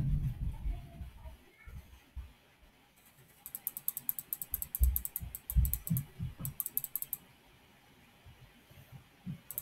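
Game sword blows land with dull thuds, again and again.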